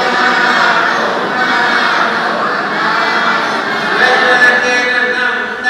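A large crowd murmurs and chatters in an echoing hall.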